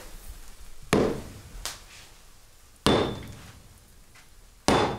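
A hammer strikes hot metal on an anvil with sharp ringing blows.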